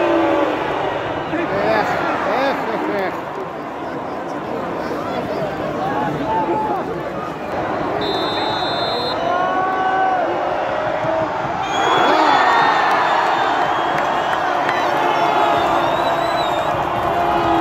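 A large crowd of fans chants and sings loudly in an open stadium.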